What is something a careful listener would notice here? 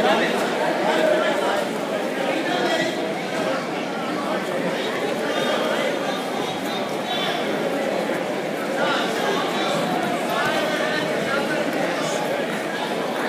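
A crowd chatters and shouts throughout a large echoing hall.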